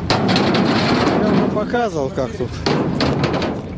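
A concrete mixer rumbles as its drum turns and pours.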